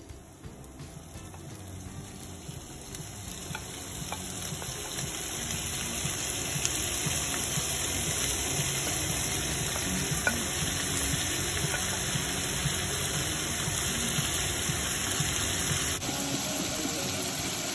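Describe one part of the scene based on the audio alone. Raw meat tumbles into a hot pan and sizzles louder and louder.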